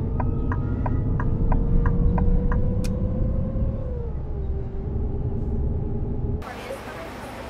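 A bus engine drones steadily, then its pitch drops slightly.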